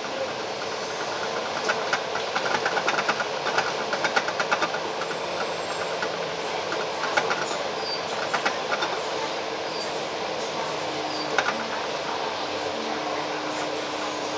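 Busy city traffic rumbles steadily outdoors.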